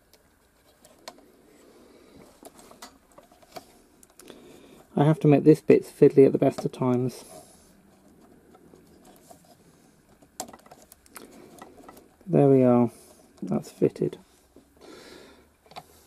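Small metal parts click and tap softly as fingers fit them together.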